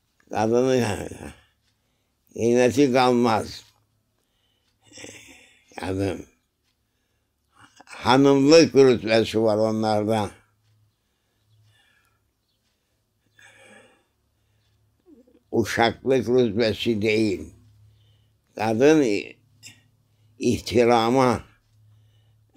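An elderly man speaks slowly and calmly close by, with long pauses.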